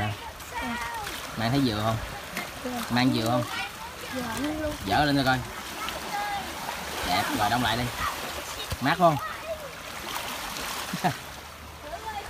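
A young boy talks with animation close by.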